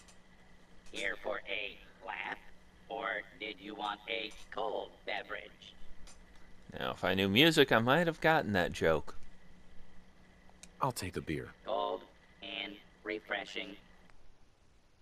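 A robotic voice speaks cheerfully through a small speaker.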